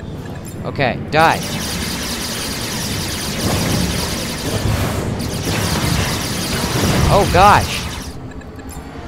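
Explosions rumble deeply and keep booming.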